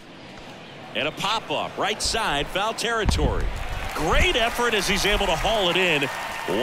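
A crowd cheers after the hit.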